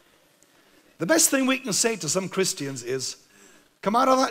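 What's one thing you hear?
A man speaks through a microphone with animation in a large echoing hall.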